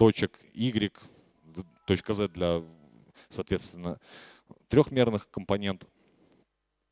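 A man speaks into a microphone, with pauses.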